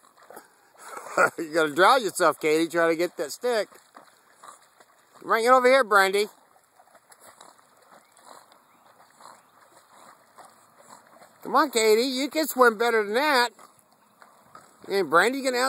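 A dog paddles through water.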